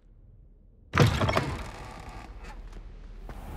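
A heavy wooden door creaks and thuds open.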